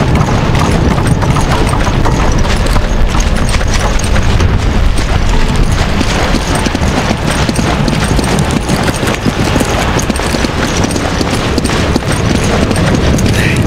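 Heavy footsteps run on stone.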